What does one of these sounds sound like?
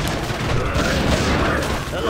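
A magic blast bursts with a whoosh during a fight.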